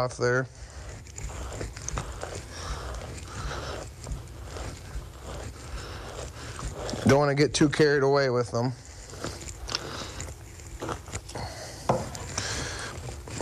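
A knife cuts and scrapes through an animal's hide.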